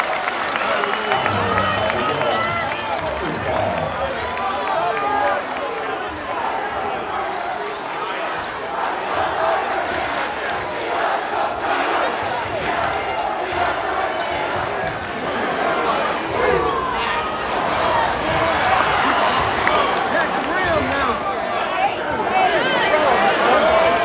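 A large crowd cheers and chatters in an echoing gym.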